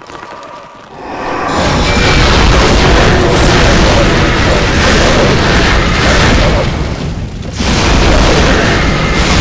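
Fire spells roar and crackle loudly in a battle.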